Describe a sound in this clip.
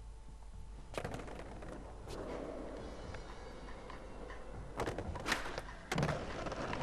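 A skateboard clacks sharply as it pops and lands.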